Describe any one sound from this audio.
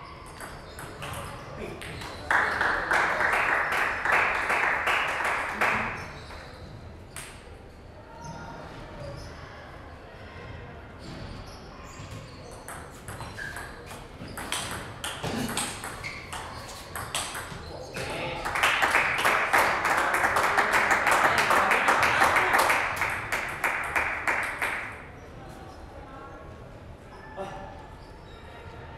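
A table tennis ball clicks sharply against paddles and a table in a large echoing hall.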